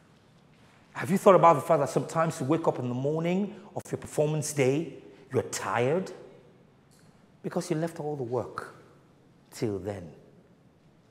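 A man speaks with animation in a room with a slight echo.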